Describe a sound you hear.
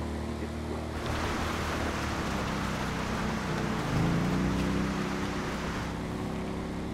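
Tyres rumble over gravel on a roadside.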